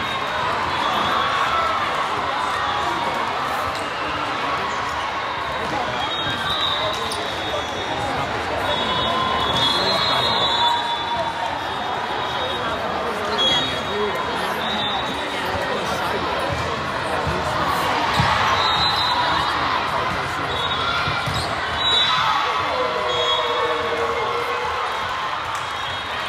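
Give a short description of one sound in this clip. Shoes squeak sharply on a hard gym floor.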